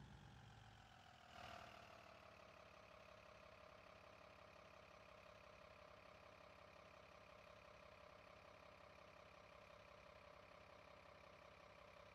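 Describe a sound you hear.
A bus engine idles with a steady hum.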